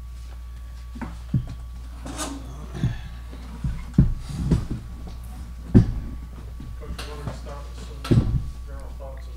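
Chairs bump and scrape as two people sit down.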